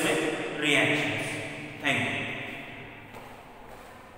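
A man speaks loudly and with animation close by, in a room with some echo.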